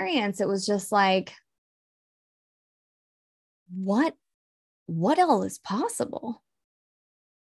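A woman talks calmly over an online call, in short bursts with pauses.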